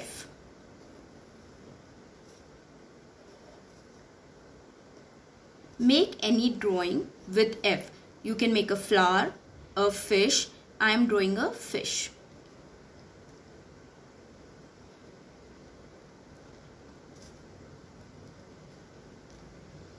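A marker pen scratches softly across a paper card.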